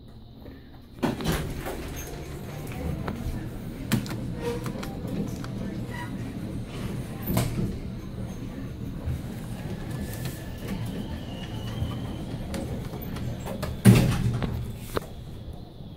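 An elevator car hums and rumbles steadily as it moves.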